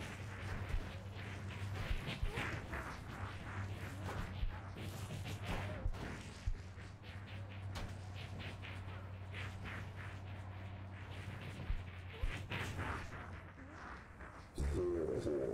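Flames crackle and burst in quick pops.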